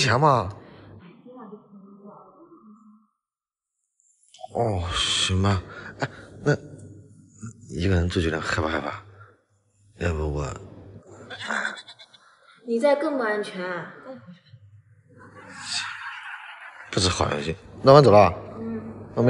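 A young woman talks close by in short, calm remarks.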